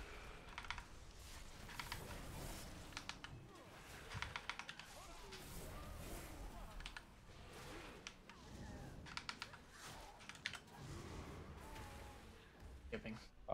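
Magic spells crackle and chime in a battle.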